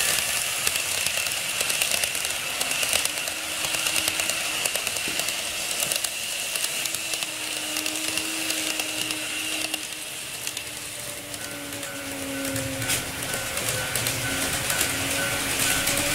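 An N gauge model train rolls along its track with a faint motor whine.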